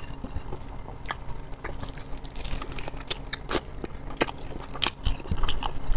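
Crispy chicken skin crackles and tears close to a microphone.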